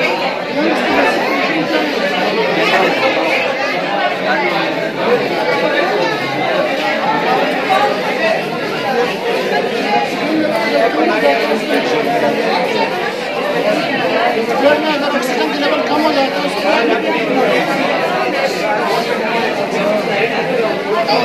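A crowd of people chatter in an echoing room.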